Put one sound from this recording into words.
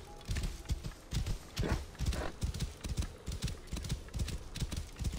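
Hooves thud rapidly on a dirt path as a horse gallops.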